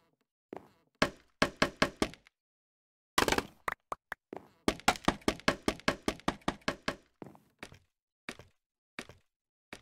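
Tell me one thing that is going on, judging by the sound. Wooden blocks are set down with quick, hollow knocks.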